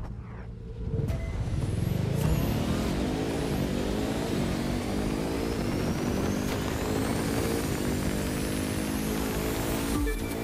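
A race car engine revs up and roars as the car speeds up.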